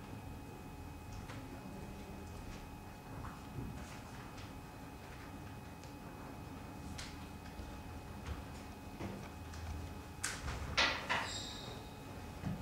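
A young woman speaks calmly, heard from across a room.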